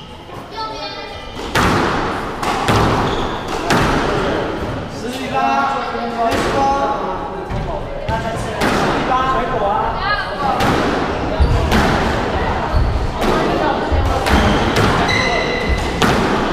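A squash ball smacks hard against the walls with a sharp echo.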